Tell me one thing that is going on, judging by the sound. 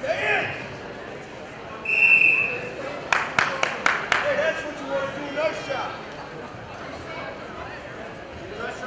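A crowd cheers and shouts in an echoing hall.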